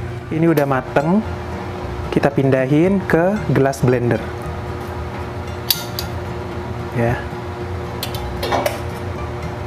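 Metal tongs clink against a steel pot.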